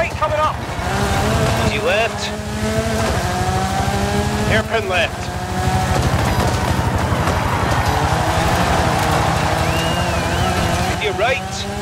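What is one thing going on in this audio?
Tyres skid and crunch on loose gravel.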